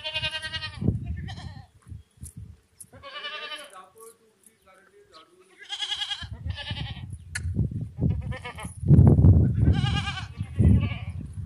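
Goats bleat loudly nearby, over and over.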